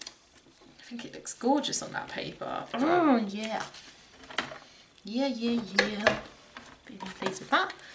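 Paper rustles as it is handled and slid across a table.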